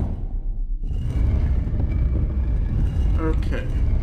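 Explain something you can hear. A metal grate creaks open.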